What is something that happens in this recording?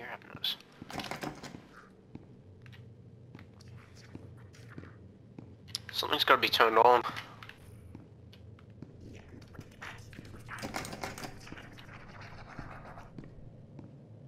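A young man speaks with animation into a headset microphone, close by.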